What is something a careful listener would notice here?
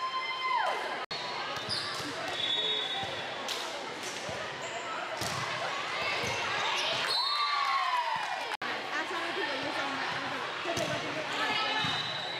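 Spectators and players chatter and call out in a large echoing gym.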